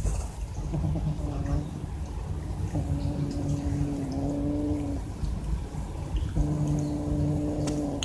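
A cat growls low while eating.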